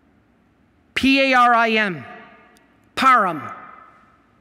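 A middle-aged man speaks emphatically through a microphone in a large echoing hall.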